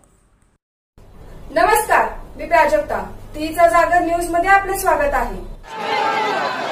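A young woman reads out the news calmly and clearly.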